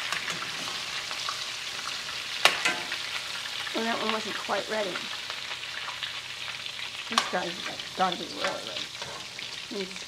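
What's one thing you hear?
A metal spatula scrapes and clatters against a frying pan.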